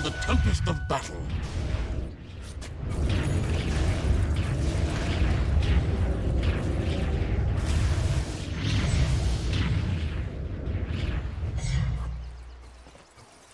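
Fantasy game spells crackle and blast during a fight.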